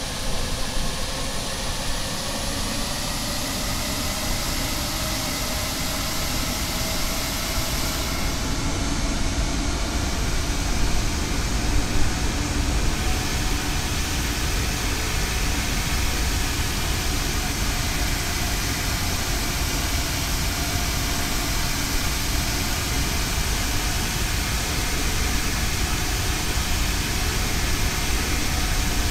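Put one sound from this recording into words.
A twin-engine jet airliner's engines roar and whine in flight.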